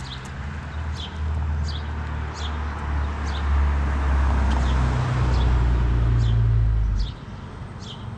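A car drives past on the road with a rising rumble that cuts off.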